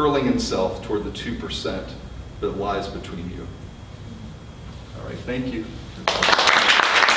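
A man reads aloud calmly into a microphone.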